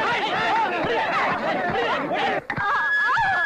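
A crowd of men shouts and scuffles.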